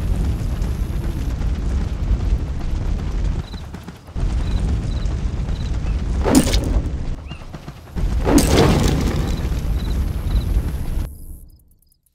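Leaves rustle loudly as something pushes through dense plants.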